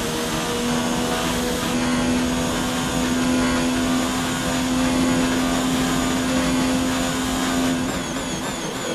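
A racing car engine roars at a high, steady pitch at full speed.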